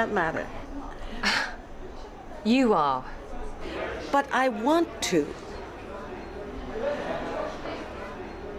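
A second woman answers softly.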